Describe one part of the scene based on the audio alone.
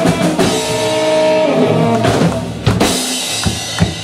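A rock band plays loudly through amplifiers and ends on a ringing chord.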